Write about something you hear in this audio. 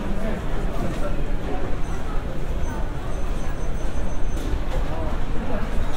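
An escalator hums and rattles steadily.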